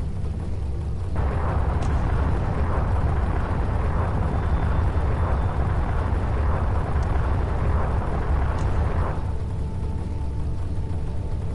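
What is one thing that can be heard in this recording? A spaceship's engines roar with a deep, steady rumble.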